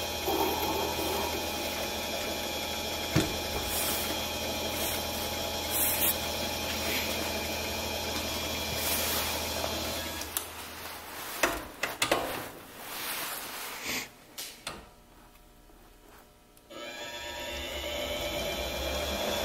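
A cutting tool scrapes against a spinning workpiece.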